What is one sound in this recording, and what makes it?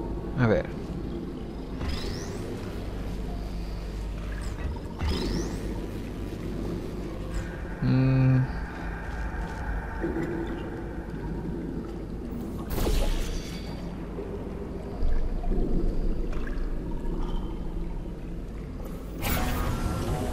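A portal gun fires with a sharp electric zap, several times.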